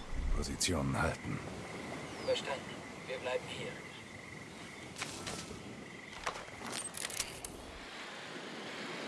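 Gear rustles through leafy undergrowth.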